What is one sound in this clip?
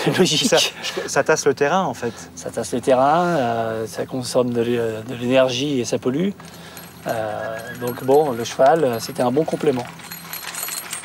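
A man speaks calmly and with animation nearby.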